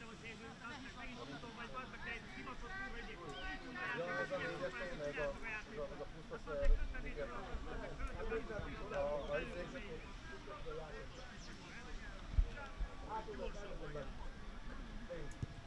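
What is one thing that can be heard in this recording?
Adult men talk and call out to each other outdoors, some way off.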